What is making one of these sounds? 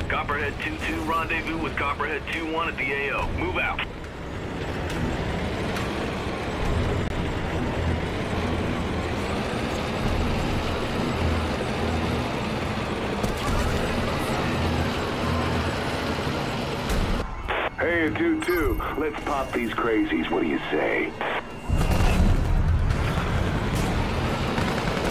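A heavy armoured vehicle's engine rumbles low and steadily.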